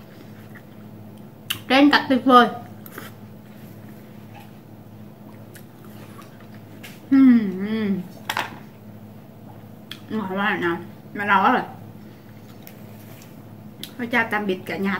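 A young woman chews juicy watermelon with wet smacking sounds.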